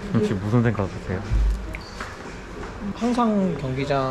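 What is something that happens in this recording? A young man answers a question calmly, close by.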